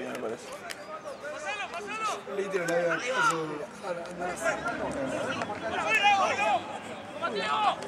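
Young men shout and call out to one another outdoors.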